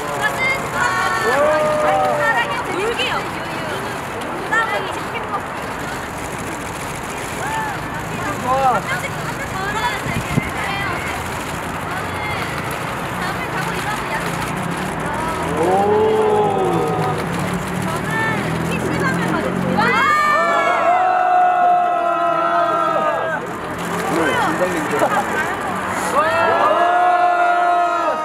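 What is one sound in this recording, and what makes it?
Young women chat and laugh close by.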